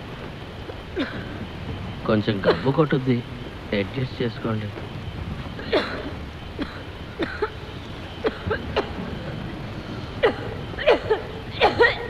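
A young woman sobs and moans softly close by.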